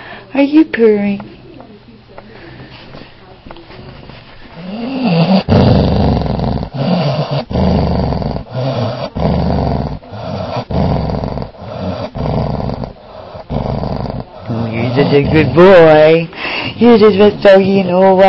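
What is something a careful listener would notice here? A dog whines and howls up close.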